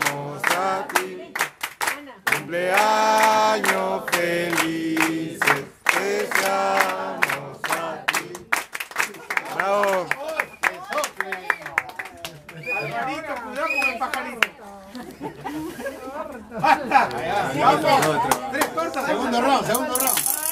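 A group of people sings together close by.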